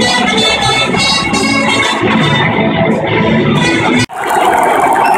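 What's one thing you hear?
A marching band plays brass and drums in a large open stadium.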